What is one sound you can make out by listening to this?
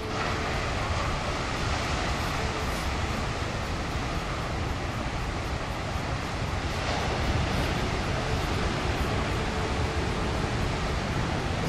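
Ocean waves crash and roar against rocks nearby.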